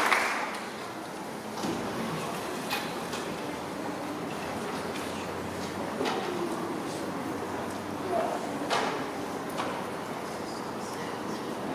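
Children murmur softly.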